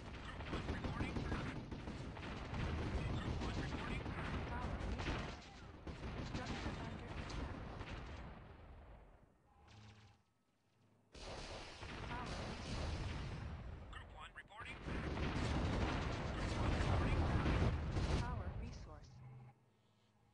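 Explosions and gunfire rumble in a battle.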